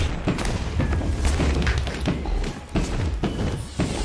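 Fireballs burst with crackling explosions.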